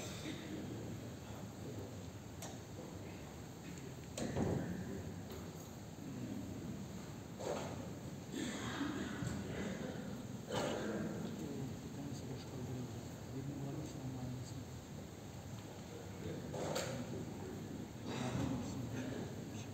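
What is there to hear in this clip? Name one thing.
A crowd of men murmurs softly in a large echoing hall.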